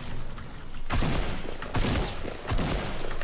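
Gunshots fire in quick bursts in a video game.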